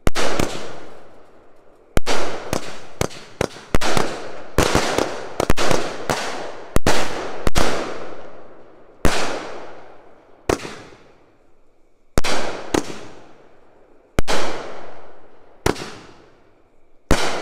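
Fireworks burst with loud booming bangs outdoors.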